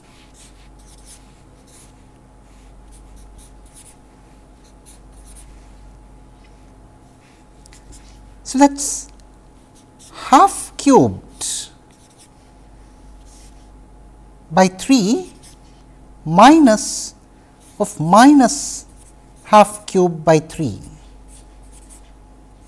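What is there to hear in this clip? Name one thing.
A felt marker squeaks and scratches on paper.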